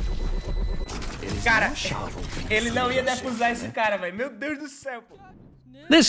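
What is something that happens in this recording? A young man laughs loudly into a microphone.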